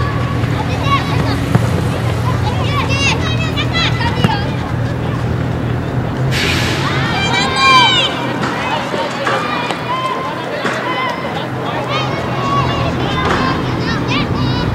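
Children shout and call out excitedly across an open field.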